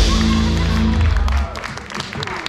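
A band plays loudly with drums and bass in a large hall.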